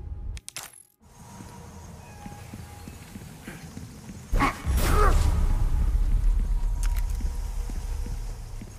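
Footsteps run quickly over a stone floor.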